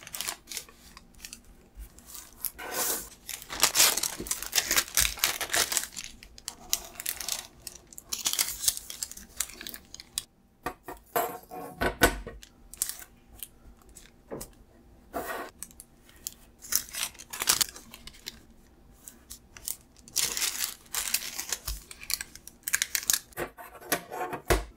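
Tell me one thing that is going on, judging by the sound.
Fingers slide along paper, pressing creases.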